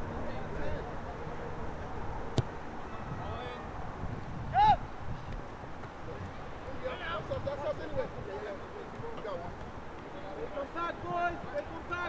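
Young players shout to each other outdoors across an open field.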